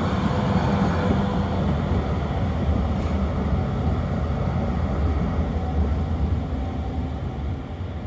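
A tram rolls past with a low rumble and fades away.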